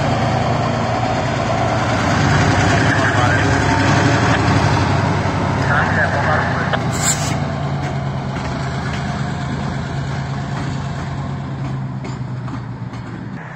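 Steel wheels squeal and clatter on the rails.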